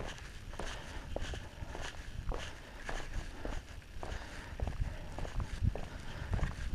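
Skateboard wheels rumble steadily over rough pavement.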